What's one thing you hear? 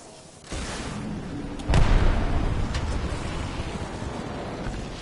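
Wind rushes loudly during a fast fall through the air.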